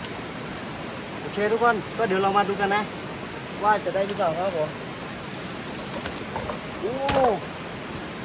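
A bamboo trap scrapes and knocks on wooden planks.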